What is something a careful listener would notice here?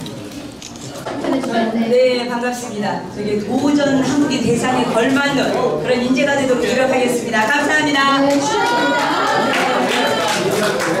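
A woman speaks with animation into a microphone over loudspeakers.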